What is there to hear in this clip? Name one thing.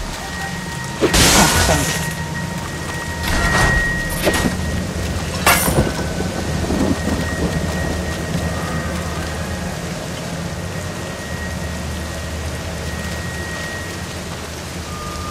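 Automatic gunfire rattles in a video game.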